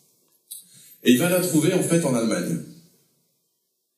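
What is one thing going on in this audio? A man speaks briefly into a microphone, close up.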